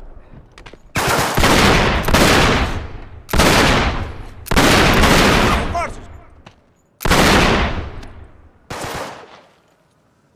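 Gunshots crack and echo in the open air.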